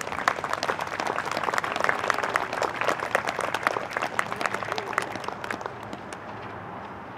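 An audience claps outdoors.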